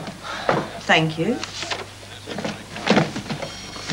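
A woman speaks cheerfully.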